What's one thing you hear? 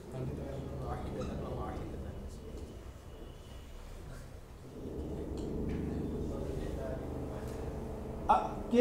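A man speaks steadily and calmly into a microphone.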